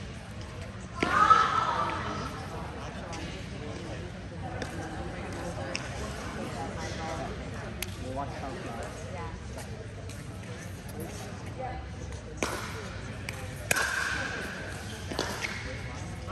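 Paddles strike a ball with sharp pops, echoing in a large hall.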